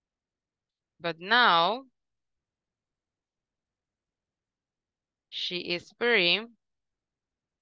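A young woman speaks slowly and clearly through an online call, dictating in two short phrases.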